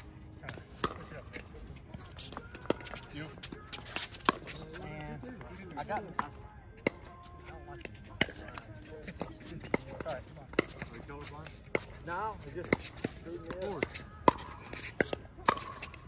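Paddles hit a plastic ball with sharp, hollow pops outdoors.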